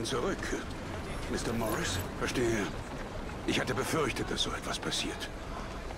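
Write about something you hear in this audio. An elderly man speaks calmly, close by.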